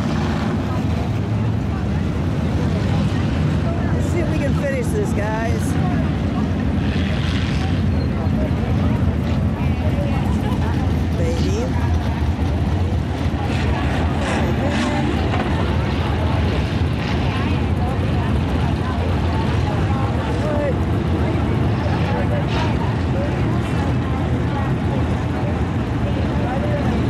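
Race car engines roar loudly as the cars speed past outdoors.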